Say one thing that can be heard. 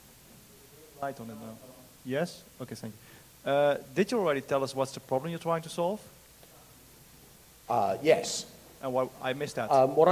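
A man speaks out in a large room, heard at a distance.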